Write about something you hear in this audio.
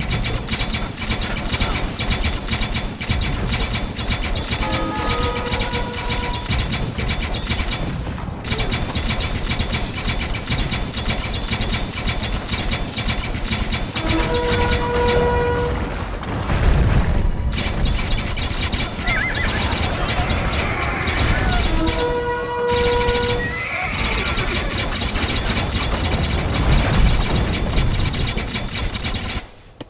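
Swords clash and clang in a busy battle.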